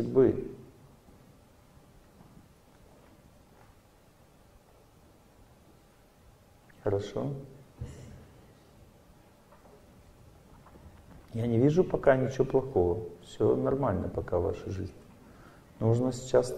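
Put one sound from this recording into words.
A middle-aged man speaks calmly into a microphone, with pauses between phrases.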